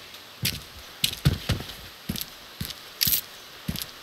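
Footsteps clatter on stairs.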